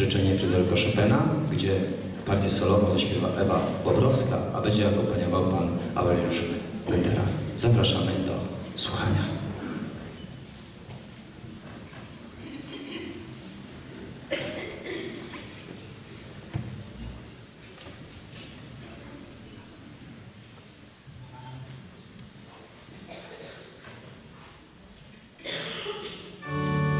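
A large mixed choir sings together in a reverberant hall.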